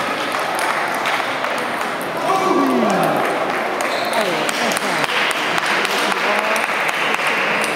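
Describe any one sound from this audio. A table tennis ball clicks back and forth on a table and paddles.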